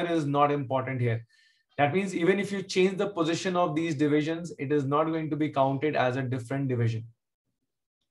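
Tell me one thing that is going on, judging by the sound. A man speaks steadily and calmly into a close microphone.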